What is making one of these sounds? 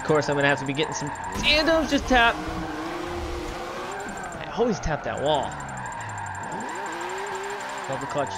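A car engine revs up and down hard.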